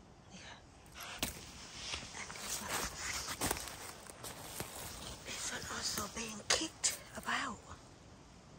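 Dry leaves rustle and crunch underfoot.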